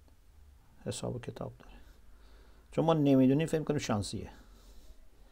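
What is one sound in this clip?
A middle-aged man speaks calmly and slowly into a close microphone.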